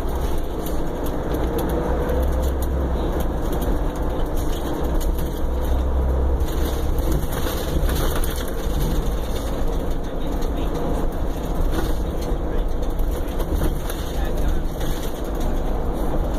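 A car drives along a road with a steady low rumble.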